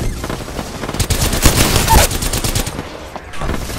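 A gun fires in rapid bursts with loud cracks.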